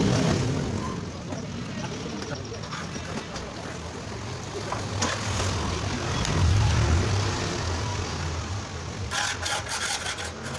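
A trowel scrapes and slaps wet cement.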